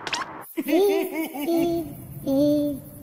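A squeaky cartoon voice laughs in bouncing, chirpy bursts.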